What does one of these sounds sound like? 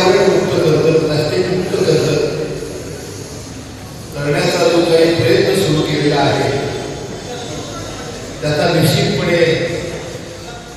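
A man gives a speech with animation through a microphone and loudspeakers, in an echoing room.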